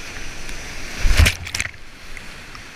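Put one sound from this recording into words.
A kayak plunges through a wave with a heavy splash.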